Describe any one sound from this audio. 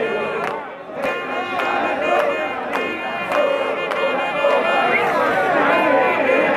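A large crowd of men and women sings and chants loudly outdoors.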